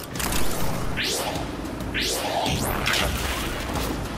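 Energy blasts whoosh with rising, sweeping tones.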